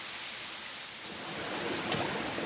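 A stream trickles gently over stones.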